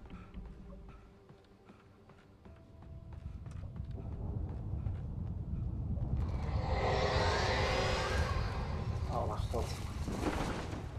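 Wind rumbles low outdoors and grows louder.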